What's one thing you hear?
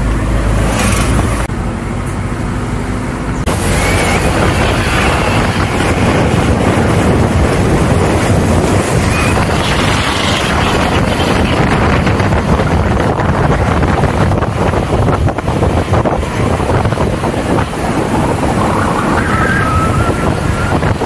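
A car drives along a road with a steady rumble of engine and tyres.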